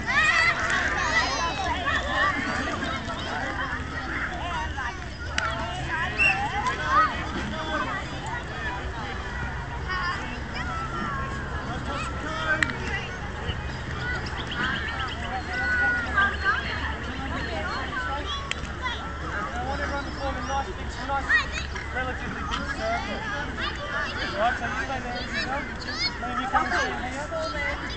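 Adults talk nearby in a relaxed way.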